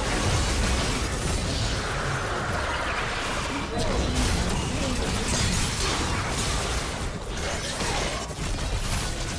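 Game spell effects crackle and burst during a fast fight.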